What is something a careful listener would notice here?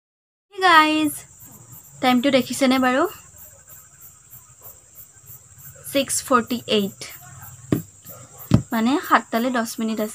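A young woman speaks warmly and close to the microphone, in short phrases with pauses.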